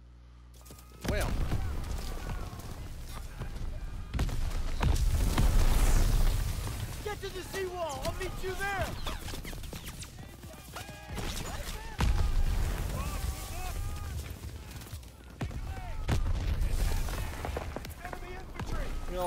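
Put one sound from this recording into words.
Gunfire crackles in rapid bursts.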